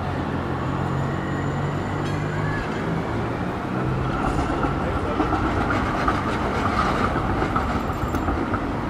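Traffic hums steadily outdoors in a busy street.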